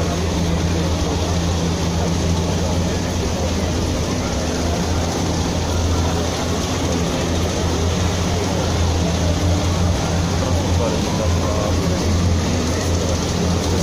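Armoured vehicle engines rumble loudly as they roll past.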